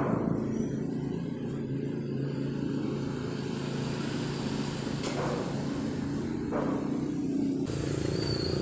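A thin metal sheet flexes and wobbles with a wobbly rattle.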